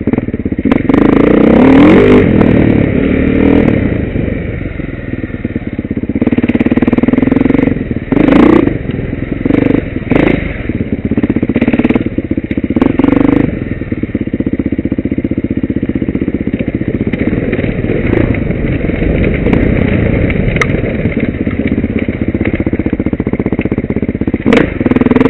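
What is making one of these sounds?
A dirt bike engine revs and roars up close, rising and falling with the throttle.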